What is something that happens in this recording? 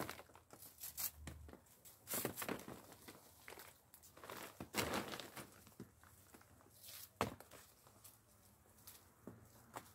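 Plastic sheeting rustles and crinkles underfoot.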